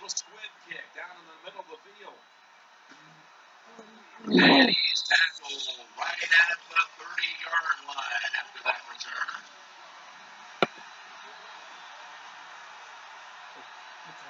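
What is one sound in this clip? A video game plays sounds through a television.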